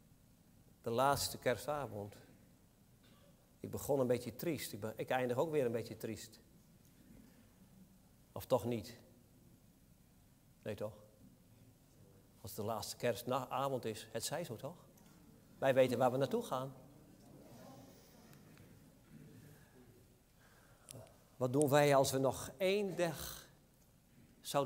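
A man speaks calmly into a microphone, in short phrases with pauses, in a room with a slight echo.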